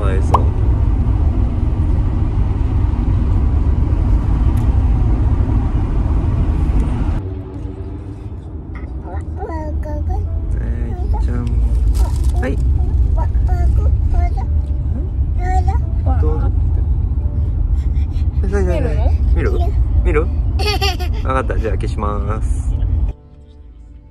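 A car engine rumbles steadily.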